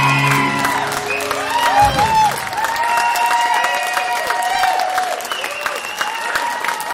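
A young woman sings through a microphone.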